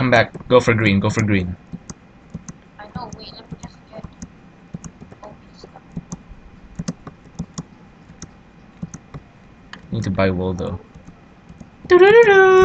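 Footsteps patter quickly and lightly on the ground.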